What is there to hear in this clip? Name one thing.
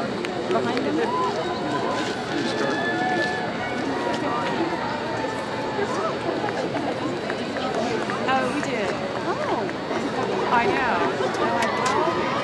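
A large crowd of young people chatters and cheers outdoors.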